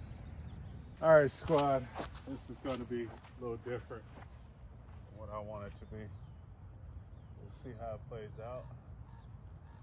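A man talks casually nearby, outdoors.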